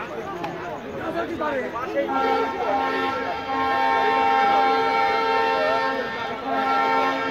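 A crowd of men and women talks nearby, outdoors.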